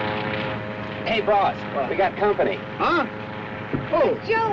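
A man talks cheerfully up close.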